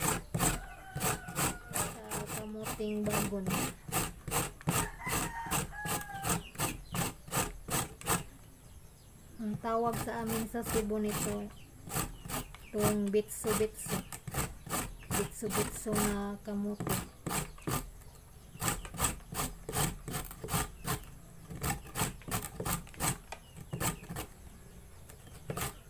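A grater scrapes rapidly and steadily against food.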